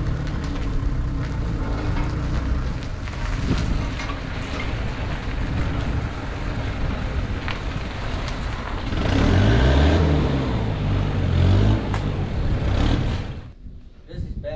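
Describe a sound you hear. A tractor engine rumbles loudly close by.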